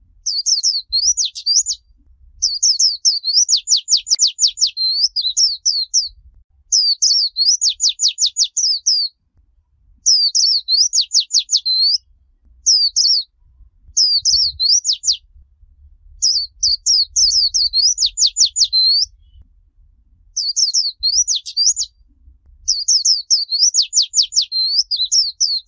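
A small bird sings loud, quick chirping phrases close by, with short pauses between them.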